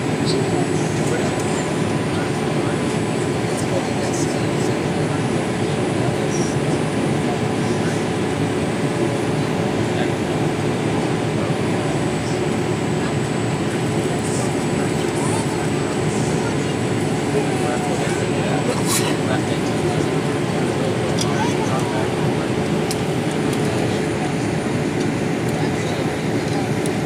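Jet engines roar with a steady low rumble inside an airliner cabin.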